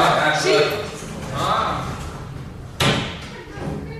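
Lift doors slide shut with a thud.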